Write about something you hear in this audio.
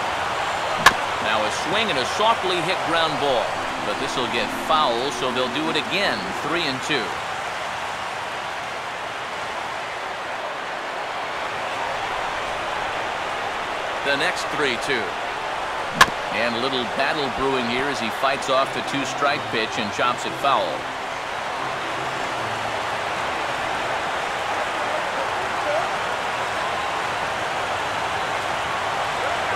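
A large crowd cheers and claps steadily in an open stadium.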